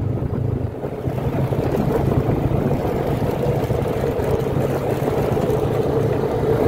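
A quad bike engine drones steadily up close.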